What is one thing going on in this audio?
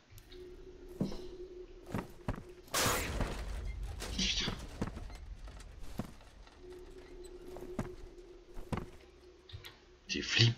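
Footsteps thud on wooden stairs at a steady walking pace.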